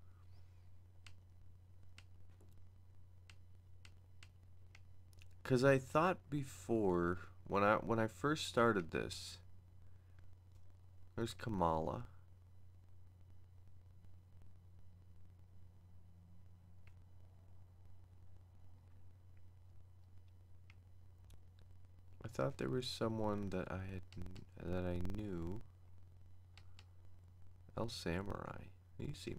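Short electronic clicks tick as a game menu cursor moves.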